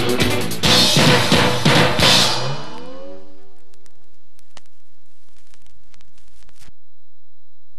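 A record crackles softly.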